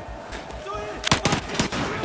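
A gun fires a few loud shots.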